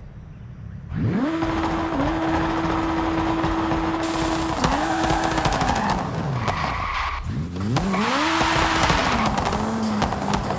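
A small car engine revs up and whines steadily, dropping and rising again as gears change.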